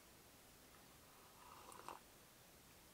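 A man slurps a sip of coffee.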